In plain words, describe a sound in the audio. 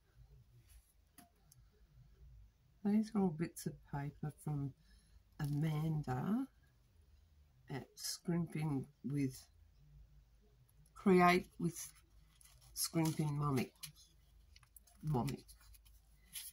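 Paper rustles and crinkles as hands fold it.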